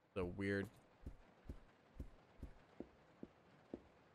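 Footsteps thud slowly and steadily.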